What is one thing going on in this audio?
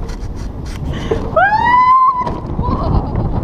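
A woman screams with excitement close by.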